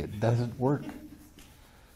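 An elderly man laughs softly.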